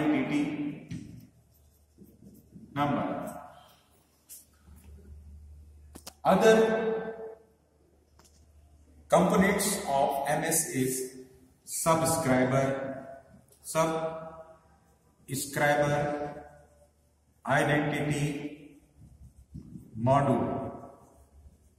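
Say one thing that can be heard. A man speaks calmly and clearly, as if teaching, close by.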